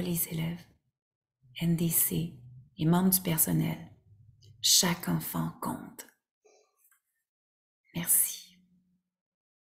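A woman reads aloud calmly and close to a microphone, with pauses between phrases.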